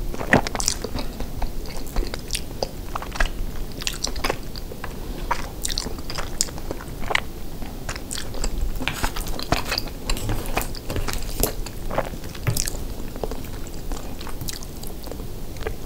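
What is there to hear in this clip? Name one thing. A woman slurps and chews food close to a microphone.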